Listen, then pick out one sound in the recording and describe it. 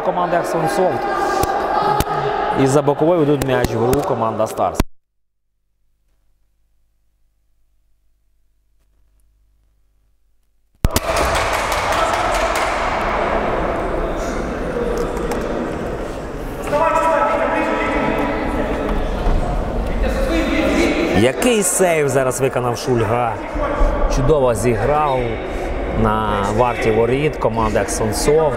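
A ball is kicked hard in a large echoing hall.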